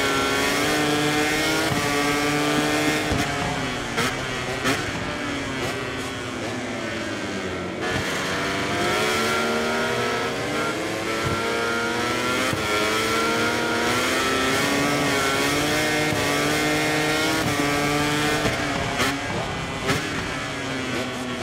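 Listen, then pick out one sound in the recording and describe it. A motorcycle engine roars at high revs, rising and falling in pitch as it shifts gears.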